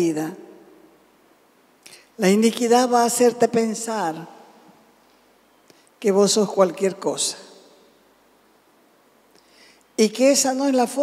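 A middle-aged woman speaks calmly through a microphone, pausing between phrases.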